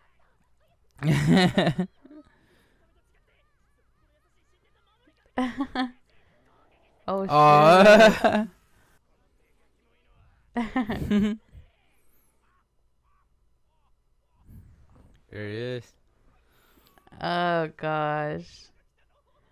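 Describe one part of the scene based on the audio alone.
A young woman talks and laughs close to a microphone.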